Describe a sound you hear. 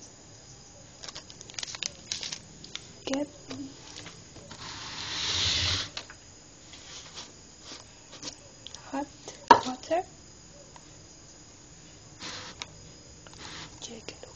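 Plastic objects knock and clatter as they are handled.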